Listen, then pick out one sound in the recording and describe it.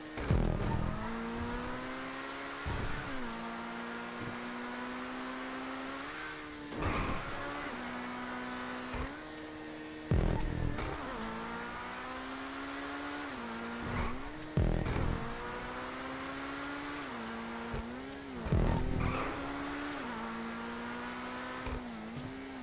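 A sports car engine roars steadily, its pitch rising and dropping sharply with each gear change.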